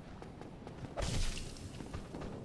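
A blade strikes flesh with a sharp hit.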